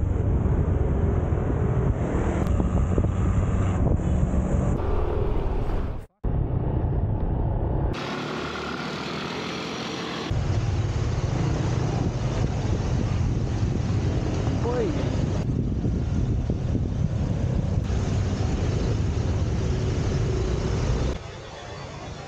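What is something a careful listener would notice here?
A scooter engine hums steadily while riding.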